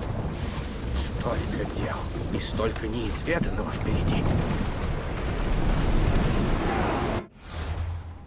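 Waves rush and splash against a ship's hull.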